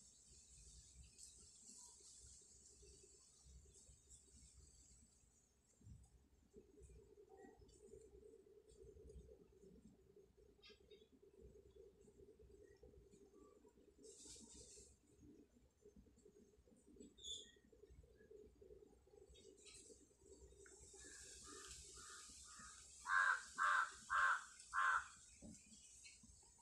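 Knitting needles click and scrape softly against each other.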